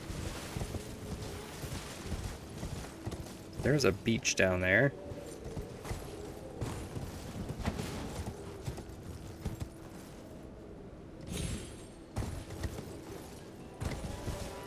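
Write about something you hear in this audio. A horse's hooves thud steadily over rock and grass.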